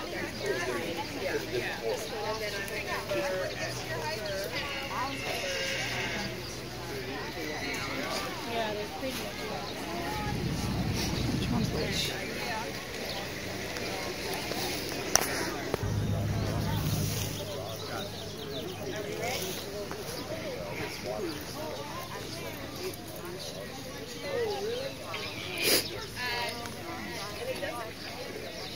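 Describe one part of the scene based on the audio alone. Men and women talk in the open air nearby.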